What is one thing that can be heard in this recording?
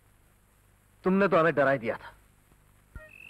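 A man answers in a raised voice.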